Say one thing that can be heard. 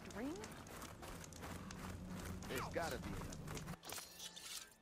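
Footsteps crunch quickly on sand.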